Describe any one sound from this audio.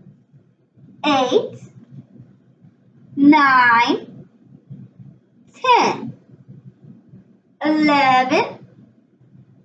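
A young woman speaks clearly and with animation, close by, in short phrases.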